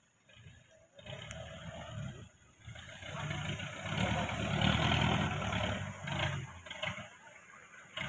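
A 4x4 pickup engine revs hard under load.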